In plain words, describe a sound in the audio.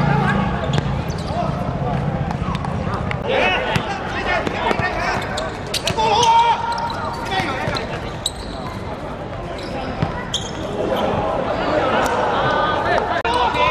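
Young men shout and call out to each other across an open pitch.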